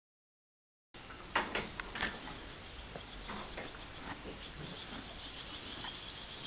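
A hand pats and rubs a horse's coat.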